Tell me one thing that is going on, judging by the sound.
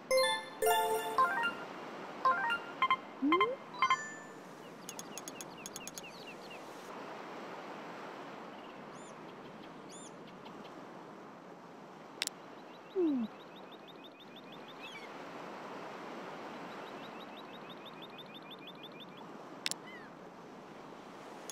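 Soft wind blows steadily outdoors.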